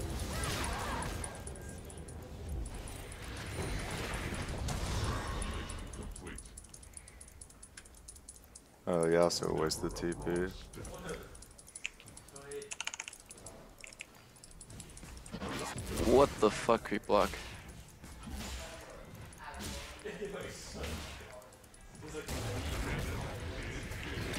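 Game spells whoosh and clash in a fight.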